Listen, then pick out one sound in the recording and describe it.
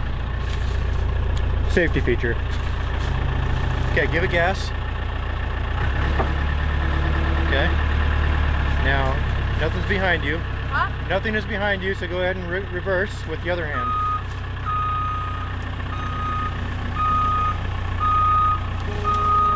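A diesel engine idles with a low rumble close by.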